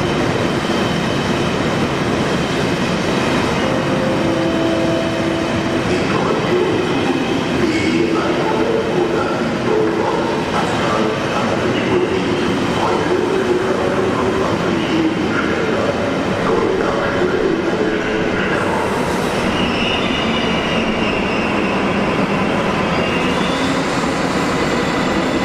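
A train rolls slowly along a track with a steady rumble, echoing in a large hall.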